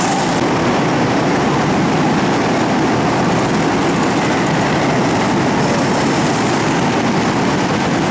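A go-kart engine revs as it drives past close by.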